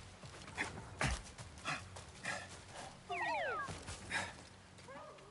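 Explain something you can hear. A man scrambles over rock and brush.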